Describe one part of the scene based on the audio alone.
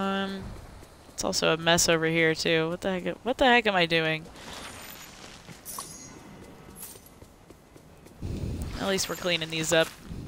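A magical shimmering chime rings out.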